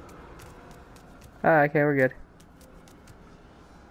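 Light footsteps run on a stone floor.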